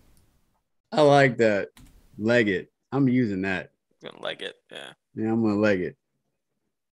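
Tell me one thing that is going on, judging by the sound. Another man speaks in short bursts over an online call.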